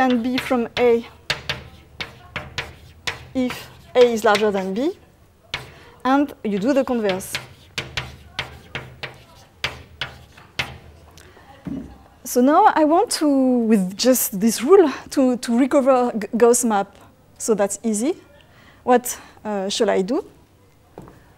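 A woman lectures through a microphone in an echoing hall.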